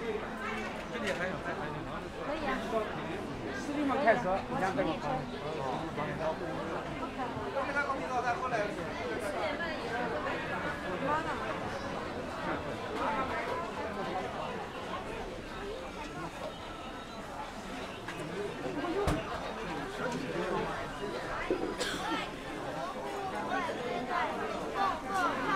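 A dense crowd of men and women chatters all around, close by.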